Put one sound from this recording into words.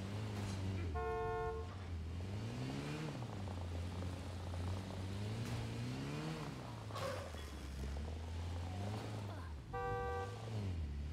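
A car horn honks in two short blasts.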